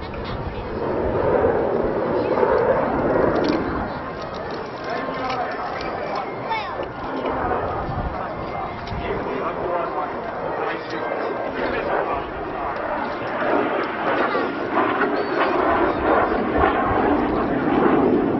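A jet engine roars overhead.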